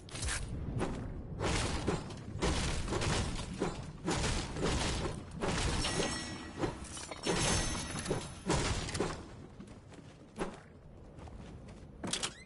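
Footsteps patter quickly across a wooden floor.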